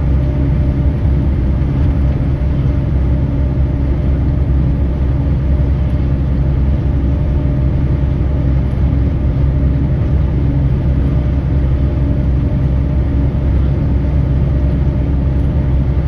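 Tyres roar steadily on a road.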